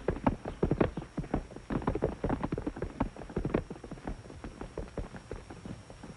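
A horse gallops away over grass, its hoofbeats fading into the distance.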